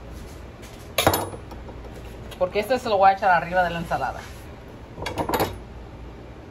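An egg taps and cracks against a wooden board.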